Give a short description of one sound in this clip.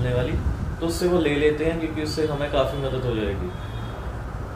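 A young man talks into a microphone with animation, close by.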